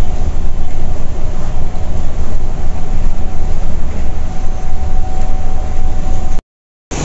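A diesel coach engine drones while cruising, heard from inside the cabin.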